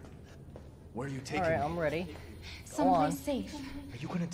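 A young woman asks questions in an anxious voice.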